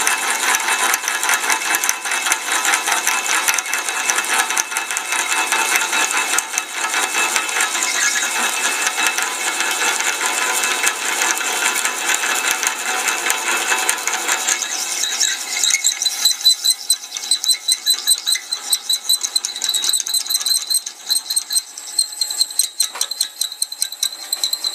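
Metal shavings rattle and scrape on a steel table.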